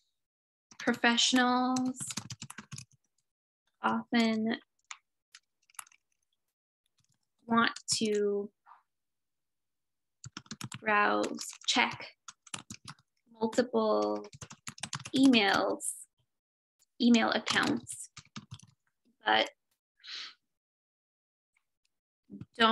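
A young woman speaks calmly in short phrases, close to a microphone, as if on an online call.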